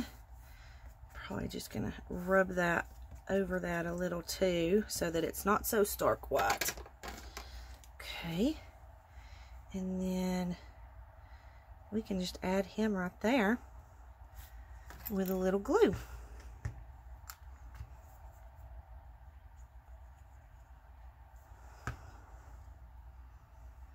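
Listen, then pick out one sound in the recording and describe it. Paper rustles and crinkles under fingers.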